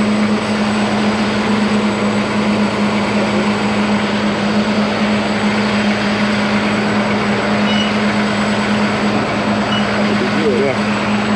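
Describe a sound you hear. A diesel truck engine idles nearby with a steady low rumble.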